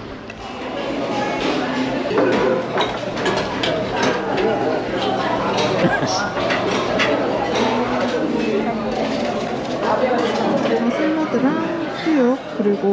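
Dishes and serving utensils clink and clatter.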